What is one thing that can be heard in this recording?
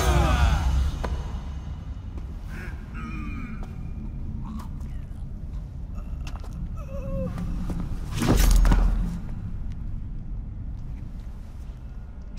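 A man grunts and groans with strain, close by.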